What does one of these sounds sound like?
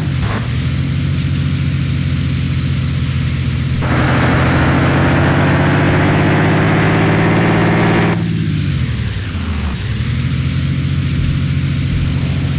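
A bus engine hums steadily at low speed.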